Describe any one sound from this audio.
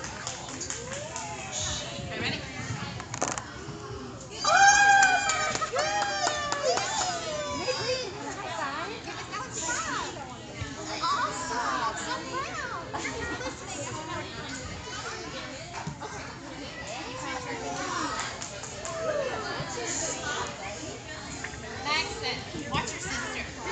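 Young children shout and squeal excitedly in a large echoing hall.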